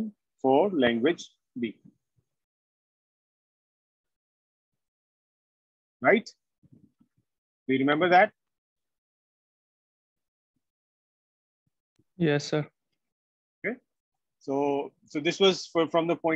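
A man speaks calmly in short bursts with pauses, heard through an online call.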